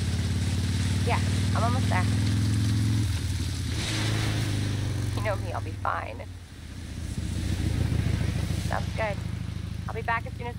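A young woman speaks calmly over a phone.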